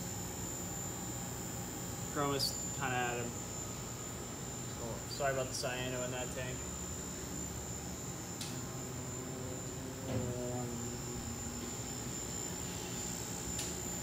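Aquarium pumps hum steadily.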